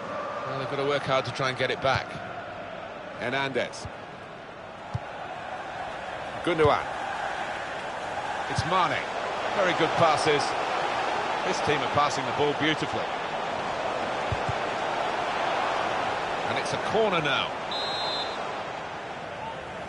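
A stadium crowd roars steadily, swelling louder for a while.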